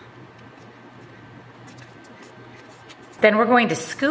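A spatula scrapes food from a pan.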